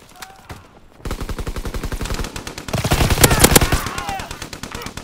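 Rapid gunshots crack close by.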